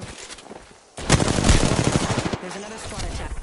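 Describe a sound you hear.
A gun fires in a video game.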